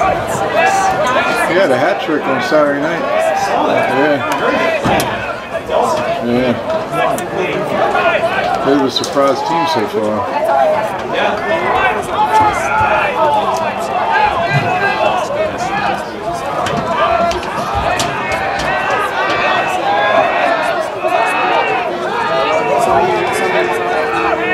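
Lacrosse sticks clack against each other.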